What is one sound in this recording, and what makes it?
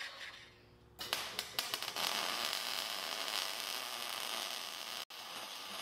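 An electric welder crackles and sizzles.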